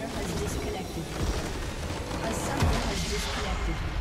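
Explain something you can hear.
A game structure shatters with a loud burst.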